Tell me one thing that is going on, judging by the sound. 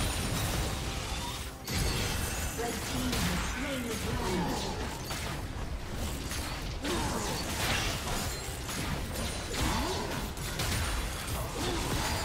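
Magical spell effects crackle and burst in a hectic fight.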